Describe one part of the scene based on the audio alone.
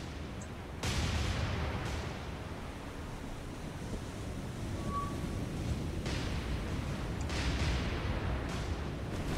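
Waves splash and wash against a ship at sea.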